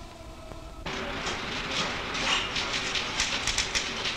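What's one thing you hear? Magazine pages rustle as they are turned.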